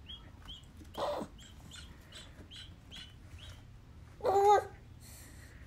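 A baby coos and babbles softly.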